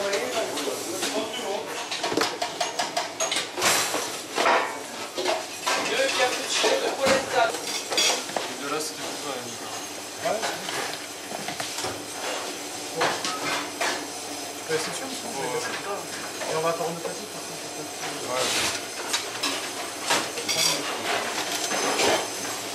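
Metal trays and utensils clatter and clink on a steel counter.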